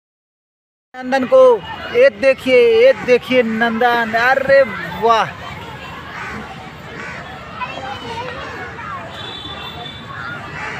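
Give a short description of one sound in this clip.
Young children shout and chatter nearby outdoors.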